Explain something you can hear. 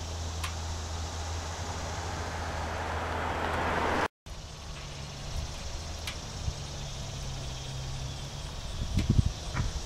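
A motorcycle engine idles nearby with a low, steady rumble.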